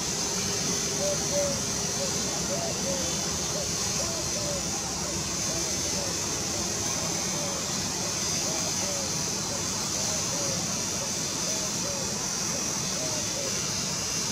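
A train's wheels squeal on the rails.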